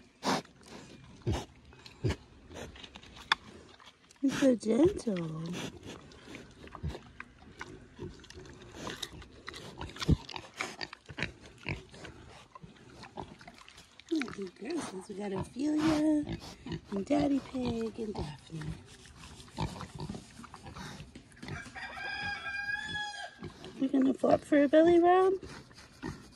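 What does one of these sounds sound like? A pig sniffs and snuffles close by.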